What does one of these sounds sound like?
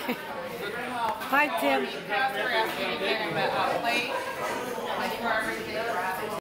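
A crowd chatters in a large room.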